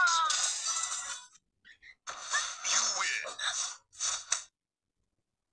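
A video game plays tinny music and effects through a small handheld speaker.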